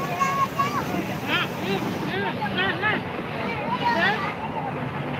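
A mix of men's and women's voices chatter nearby outdoors.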